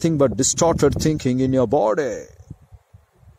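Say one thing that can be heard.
An elderly man speaks close up with animation.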